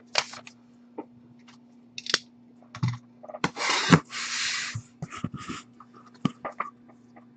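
Cardboard rustles and scrapes as a box is opened by hand.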